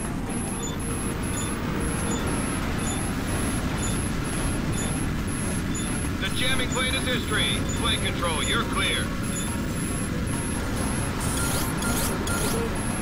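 A warning tone beeps rapidly and repeatedly.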